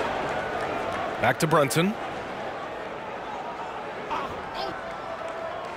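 A large arena crowd murmurs steadily.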